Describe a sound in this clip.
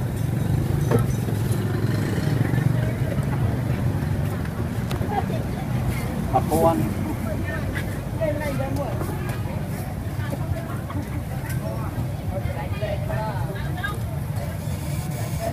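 Metal tongs clink against a metal pan.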